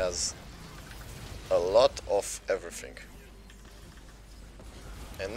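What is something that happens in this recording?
Magic spell effects zap and whoosh in a video game.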